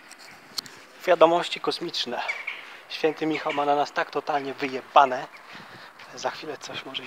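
A man talks calmly, close to the microphone.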